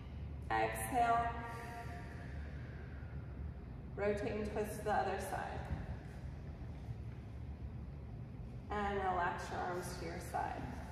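A woman speaks calmly and clearly in a room with a slight echo.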